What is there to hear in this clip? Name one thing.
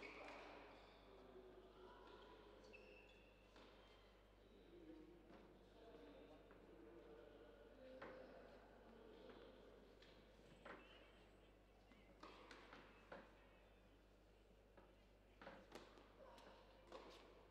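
A crowd murmurs softly in an indoor hall.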